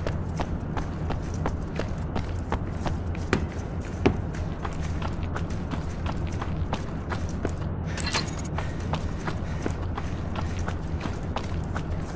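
Footsteps tap at a steady pace on a hard floor.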